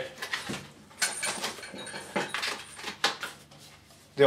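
A plastic package crinkles and rustles as it is handled.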